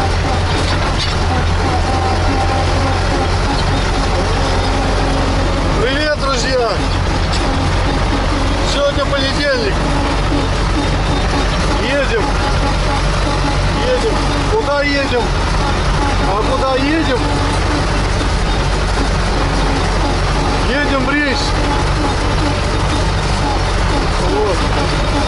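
A tractor engine drones loudly and steadily.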